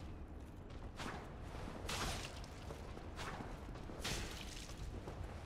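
Metal weapons clash and clang.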